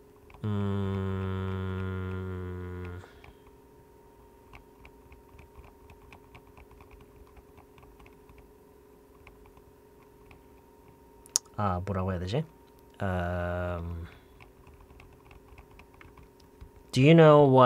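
A man sings long, held notes close to a microphone.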